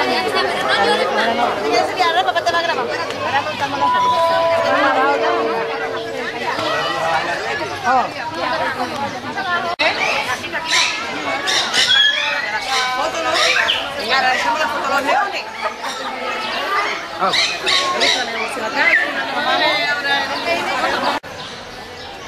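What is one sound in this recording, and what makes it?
A crowd of women and children chatter and call out nearby outdoors.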